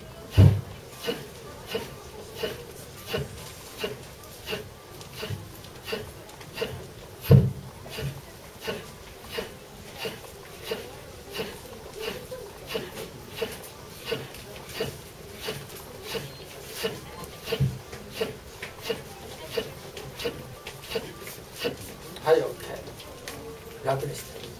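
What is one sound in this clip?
A small stick in a man's hand taps a steady, quick beat.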